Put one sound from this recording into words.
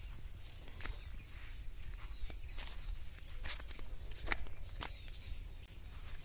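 Small bare feet patter on a dirt path.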